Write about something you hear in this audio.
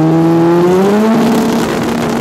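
A Pro Street drag racing motorcycle revs at the start line.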